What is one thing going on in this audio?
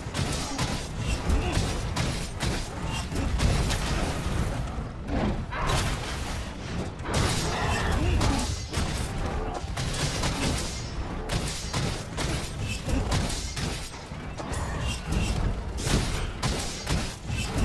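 Heavy weapon blows strike and clang again and again.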